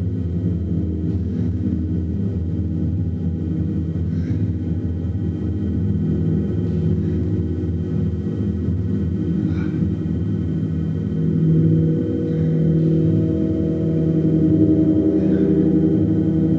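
Soft mallet strokes brush across a gong.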